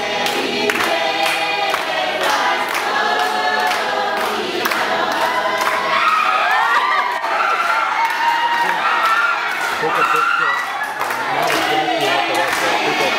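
Women sing loudly together.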